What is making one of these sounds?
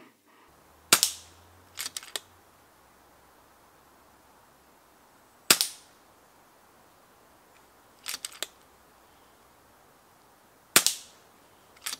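An air rifle fires with a sharp crack.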